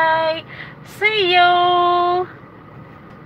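A woman sings long, held notes close by.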